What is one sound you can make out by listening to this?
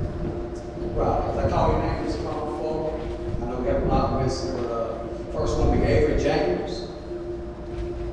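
A man speaks calmly through a loudspeaker in a large echoing hall.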